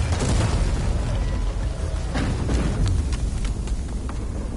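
Loose ice and rock clatter and tumble.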